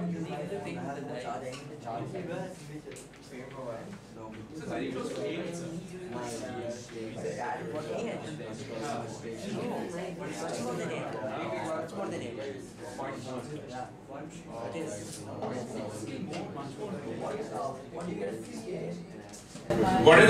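A man lectures steadily through a close microphone.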